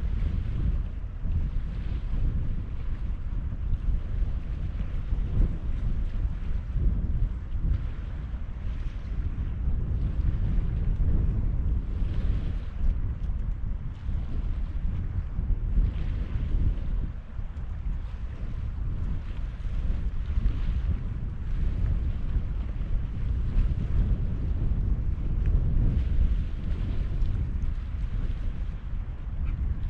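Wind rumbles steadily outdoors by open water.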